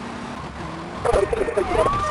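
A siren wails close by.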